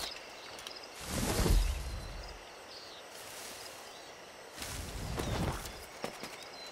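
Leafy plants rustle loudly as someone pushes through them.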